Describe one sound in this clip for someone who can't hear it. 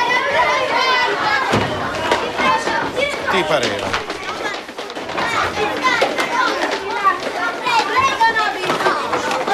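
A crowd of young boys shout and chatter excitedly in an echoing room.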